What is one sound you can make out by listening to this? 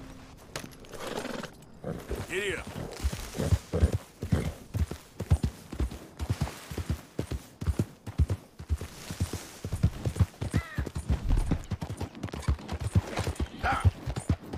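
A horse gallops, its hooves thudding quickly and steadily on the ground.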